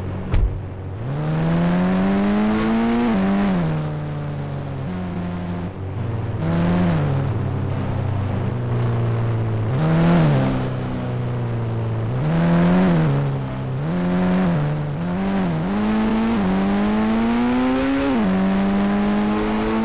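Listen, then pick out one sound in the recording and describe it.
An engine revs up and down as a vehicle drives.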